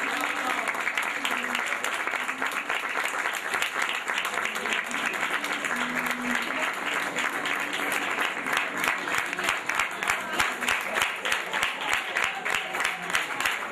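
A crowd claps along in a steady rhythm.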